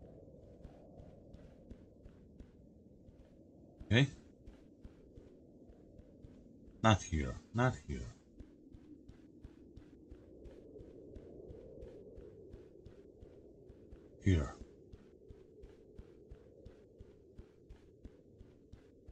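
Quick footsteps run over soft ground.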